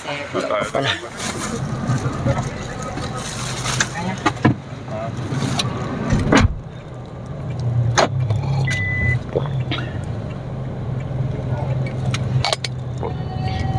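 A van engine hums steadily from inside the cabin.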